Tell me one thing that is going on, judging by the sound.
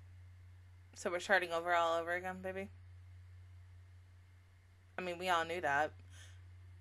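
A young woman speaks briefly and calmly into a close microphone.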